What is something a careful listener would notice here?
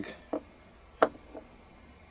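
A small weight bumps softly against the bottom of a water-filled plastic jug.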